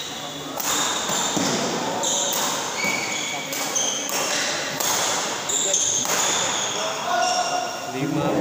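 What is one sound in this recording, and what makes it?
Shuttlecocks are struck sharply with rackets in a large echoing hall.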